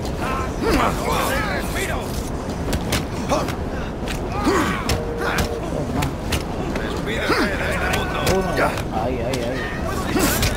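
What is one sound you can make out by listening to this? Fists thud in quick, heavy blows during a brawl.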